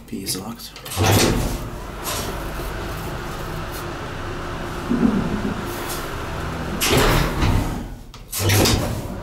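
An old single-speed traction elevator hums as it travels.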